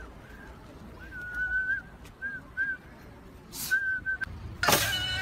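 A young woman whistles in short bursts.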